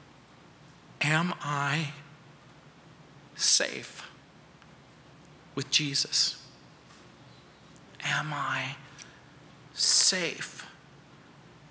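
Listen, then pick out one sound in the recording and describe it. A middle-aged man speaks calmly through a microphone in a large room, with long pauses.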